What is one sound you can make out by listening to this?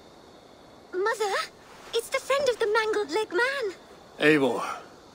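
A girl speaks with excitement.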